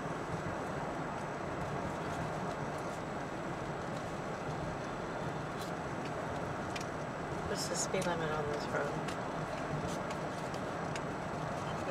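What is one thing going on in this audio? A car drives steadily along a road, its engine and tyres rumbling inside the cabin.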